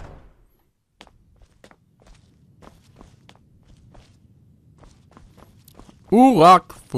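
Footsteps tap on a stone floor.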